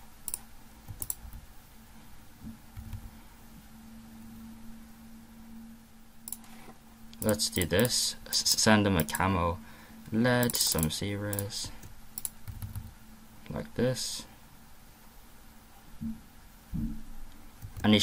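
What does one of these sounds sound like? Small game pops and clicks sound in quick bursts.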